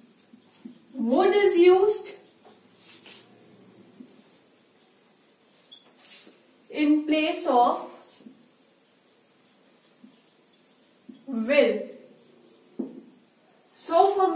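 A young woman speaks calmly and slowly, close to a microphone.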